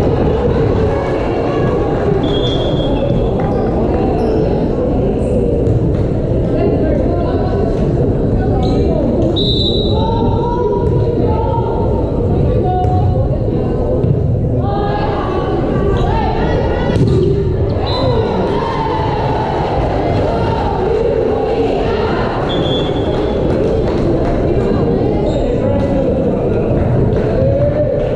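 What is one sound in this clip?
Players call out to each other on the court.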